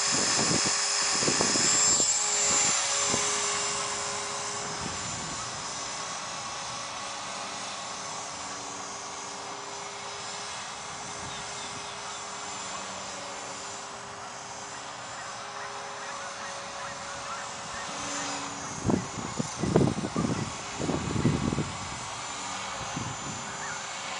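A small model helicopter's motor whines steadily, loud at first and fading as it climbs away.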